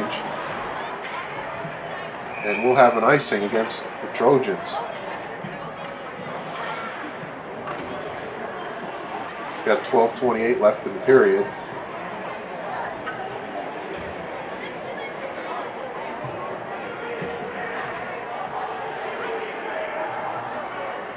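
Skates scrape across ice in a large echoing rink.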